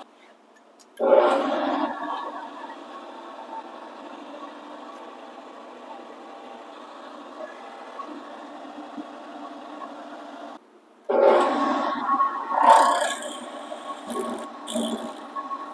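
A cutter grinds and scrapes into steel.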